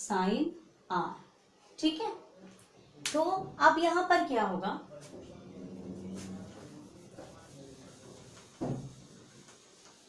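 A woman speaks clearly and with emphasis, close by.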